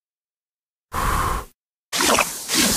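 A girl blows out birthday candles with a short puff of breath.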